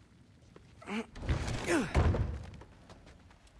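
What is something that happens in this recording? Heavy wooden doors creak and swing open.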